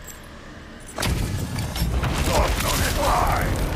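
Stone shatters with a loud, rumbling crash.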